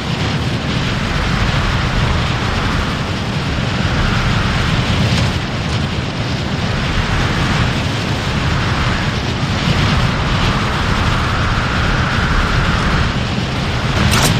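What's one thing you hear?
Wind rushes and roars loudly past at high speed.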